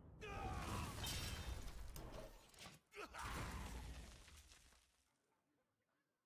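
Loud video game sound effects whoosh and ring out, then fade away.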